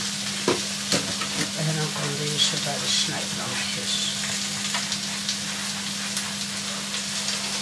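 A cloth squeaks and rubs against a plate.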